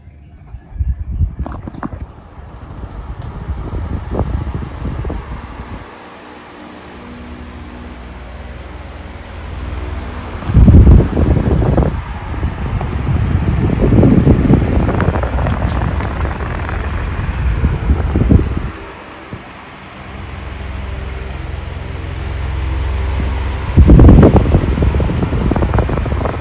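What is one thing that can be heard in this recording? An electric fan whirs steadily, its motor humming.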